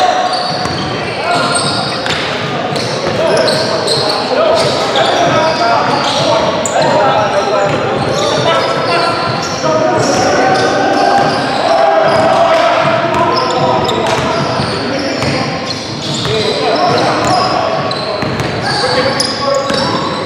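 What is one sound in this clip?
Men shout and call out across a large echoing gym.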